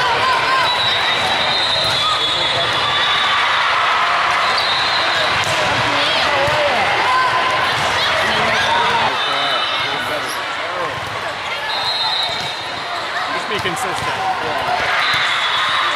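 A volleyball thumps off players' hands and arms.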